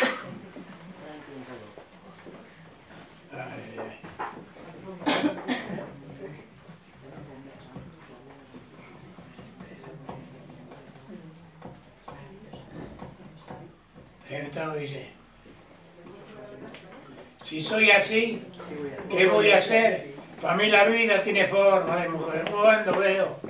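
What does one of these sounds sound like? An elderly man speaks calmly into a nearby microphone.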